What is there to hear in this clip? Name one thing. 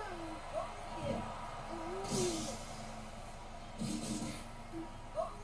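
Heavy punches thud and crash in a fighting video game.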